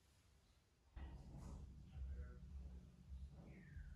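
A brush scrubs softly against a ceiling.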